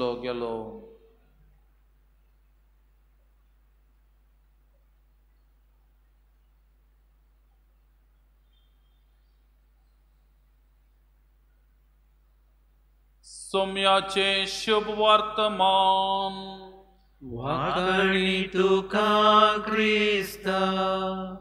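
A man chants in a steady, sung voice through a microphone, with pauses.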